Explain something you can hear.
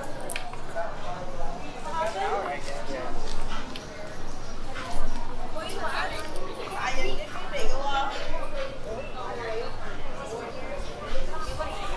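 Men and women chat nearby in a busy outdoor crowd.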